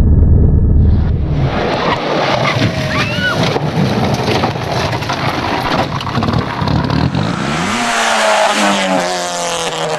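A car engine revs hard as the car speeds past.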